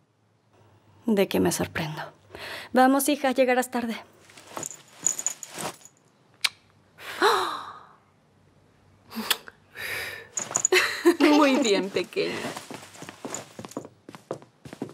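A woman speaks softly and warmly nearby.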